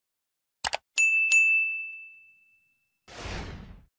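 A small bell rings once and fades.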